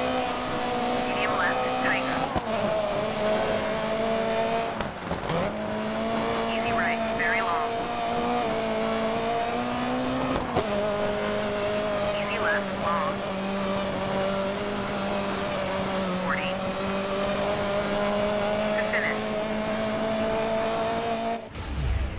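A rally car engine roars steadily, shifting gears.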